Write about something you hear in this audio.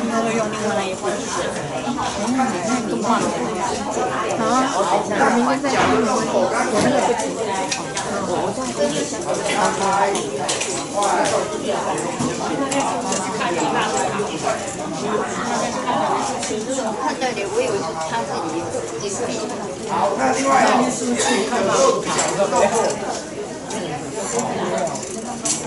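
A group of men and women sing together in an echoing hall.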